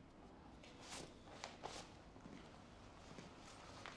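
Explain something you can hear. Footsteps walk across a hard floor.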